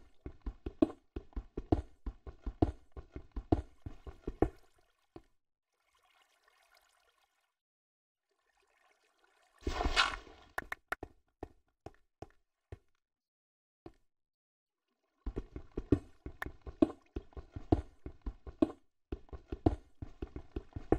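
A pickaxe chips at stone in quick, repeated blows.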